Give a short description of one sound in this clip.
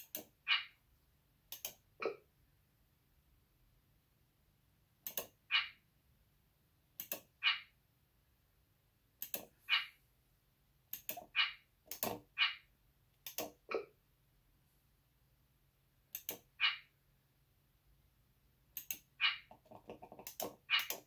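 Short electronic menu blips sound in quick bursts every few seconds.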